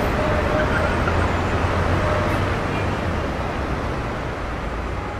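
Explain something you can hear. Many footsteps shuffle across pavement.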